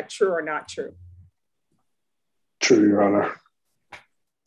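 A young man speaks briefly and calmly over an online call.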